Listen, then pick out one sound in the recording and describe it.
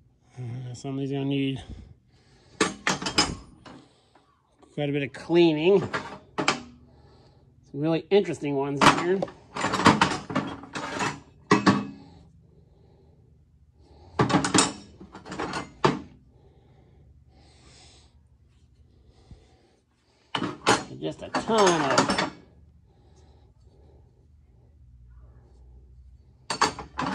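Metal wrenches clink and clatter against each other in a metal box.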